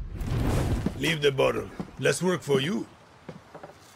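A second man speaks calmly, close by.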